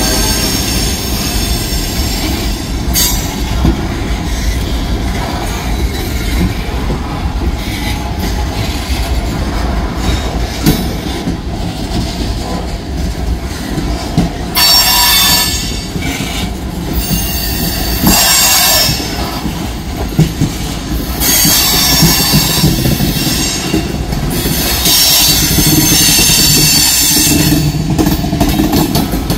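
A long freight train rumbles steadily past close by.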